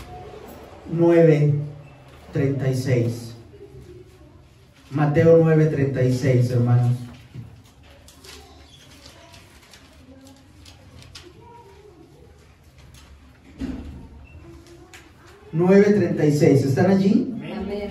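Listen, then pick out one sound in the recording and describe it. A young man reads aloud into a microphone in short bursts.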